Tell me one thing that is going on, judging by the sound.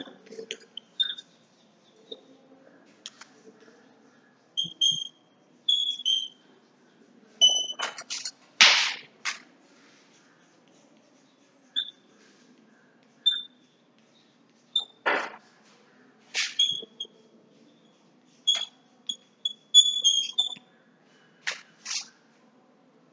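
Chalk taps and squeaks against a board.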